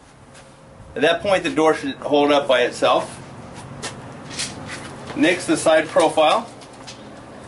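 A middle-aged man talks close by.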